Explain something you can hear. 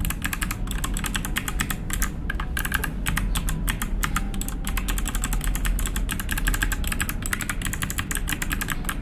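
Keyboard keys clack rapidly as fingers type.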